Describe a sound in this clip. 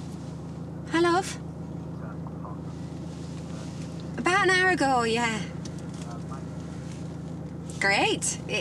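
A woman talks cheerfully on a phone inside a car.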